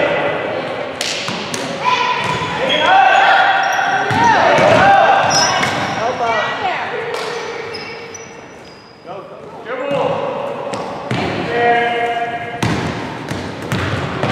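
A basketball bounces on a hard floor, echoing.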